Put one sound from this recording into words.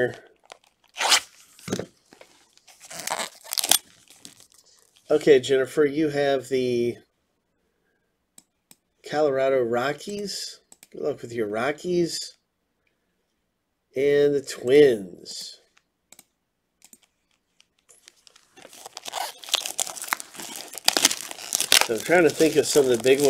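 Plastic wrap crinkles and tears as it is pulled off a box.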